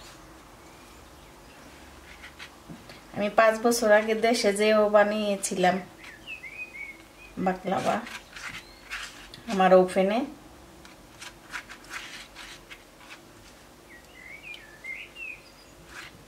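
A pastry brush dabs softly against a bowl.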